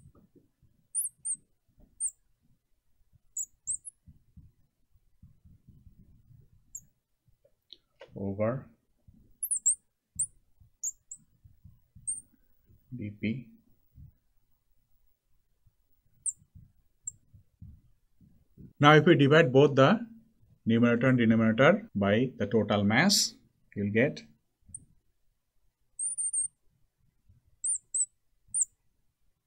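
A marker squeaks on glass.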